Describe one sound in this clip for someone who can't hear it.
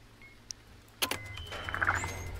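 A lever switch clunks as it is pulled down.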